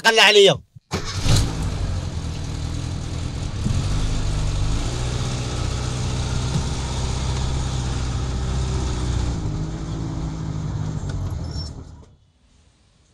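A car engine idles and drives away.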